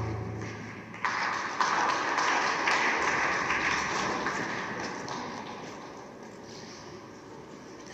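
An audience applauds loudly in a large echoing arena, slowly fading.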